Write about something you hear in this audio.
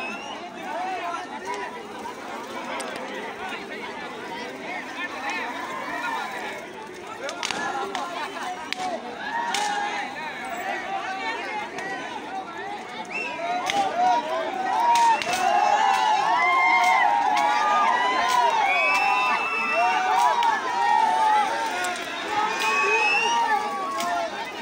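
A large crowd of men and women shouts and cheers outdoors, growing louder and more excited.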